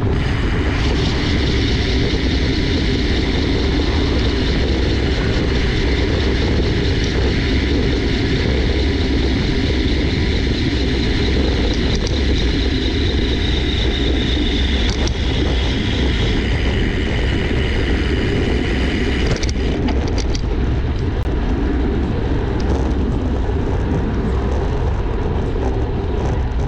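Bicycle tyres hum on smooth asphalt.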